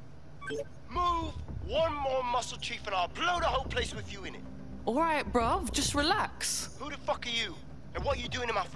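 A man speaks in a loud, threatening voice over a video call.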